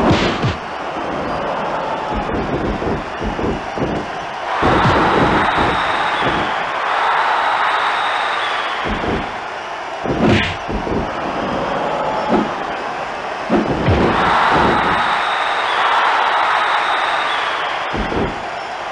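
A crowd cheers and roars steadily, swelling louder at times.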